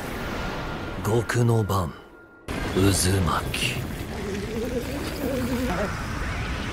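A man speaks in a low, dramatic voice.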